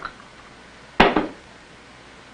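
A cup clinks on a saucer.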